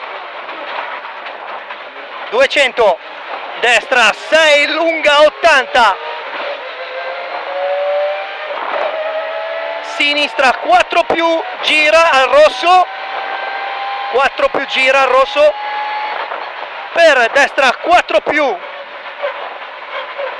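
A rally car engine roars and revs hard, rising and falling as gears change.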